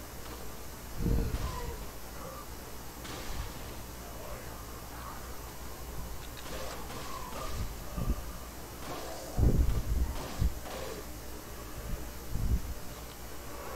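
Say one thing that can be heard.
A handgun fires a few loud shots.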